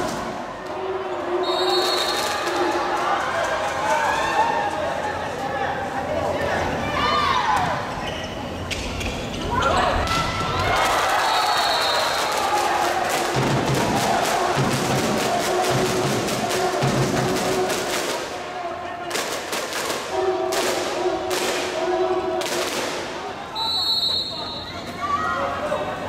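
A crowd in a large echoing hall cheers and chants.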